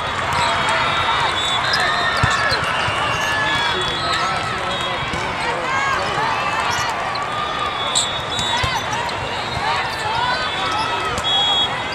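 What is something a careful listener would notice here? A volleyball thumps off players' arms and hands.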